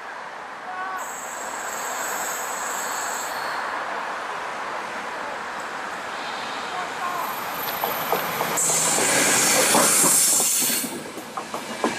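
A train approaches along the tracks.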